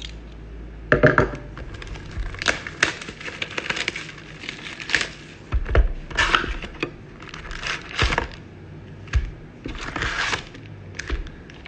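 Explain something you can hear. A cardboard box is pulled open, its flaps rustling and tapping.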